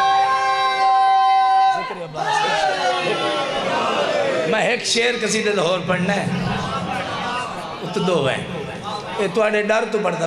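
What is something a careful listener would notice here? A man chants loudly and with passion through a microphone and loudspeakers.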